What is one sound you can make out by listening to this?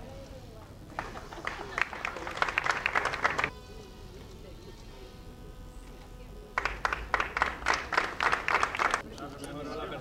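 A small group applauds outdoors.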